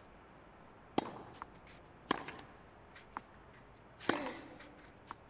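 A tennis ball is struck and bounces with sharp pops.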